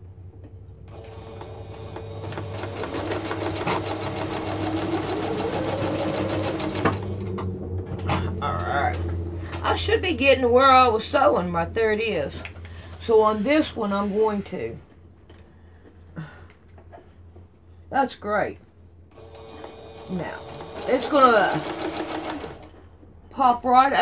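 A sewing machine whirs steadily as it stitches.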